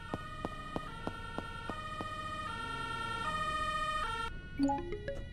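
A fire engine siren wails as the engine pulls up.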